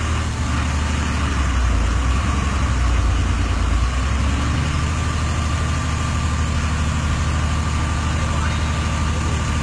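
Muddy floodwater rushes and churns across a road.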